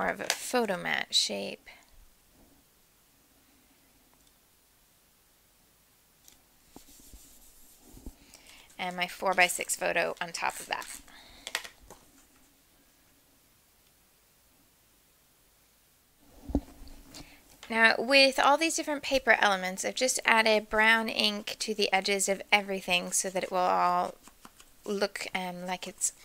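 Paper rustles and slides on a tabletop.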